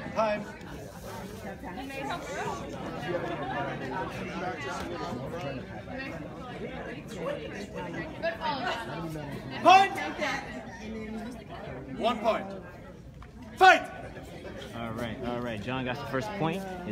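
A crowd of people chatter.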